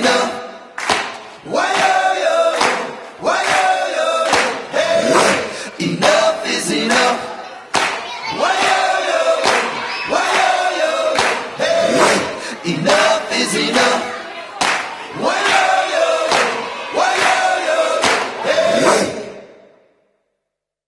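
A man raps rhythmically over a thumping beat.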